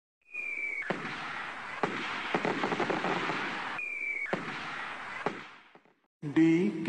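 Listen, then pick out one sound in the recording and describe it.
Fireworks burst and crackle.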